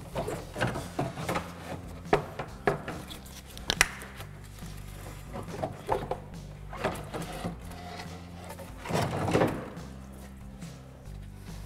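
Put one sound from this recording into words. Plastic parts click and knock as a radiator is worked loose.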